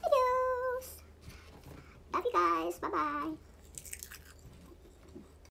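Crisp seaweed crunches softly as a woman chews.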